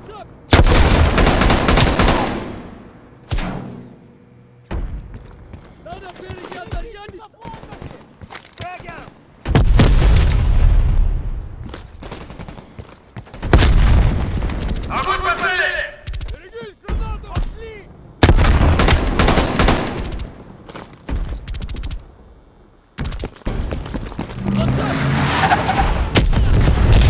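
Rapid gunfire bursts loudly and echoes.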